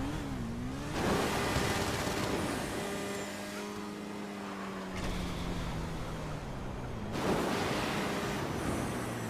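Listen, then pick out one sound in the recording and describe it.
A rocket booster roars in a video game.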